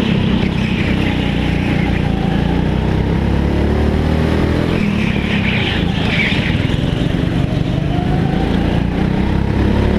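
A go-kart engine drones loudly and close by, rising and falling in pitch.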